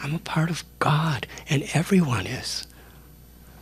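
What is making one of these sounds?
A man speaks calmly and warmly into a microphone, close by.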